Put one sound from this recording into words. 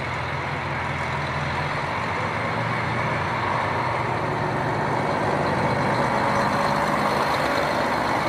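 Wheels clatter over the rail joints.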